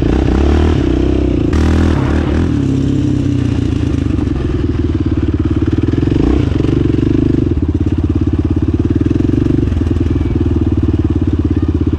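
Tyres crunch over loose dirt.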